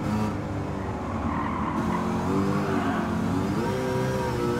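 Tyres squeal on the track through corners.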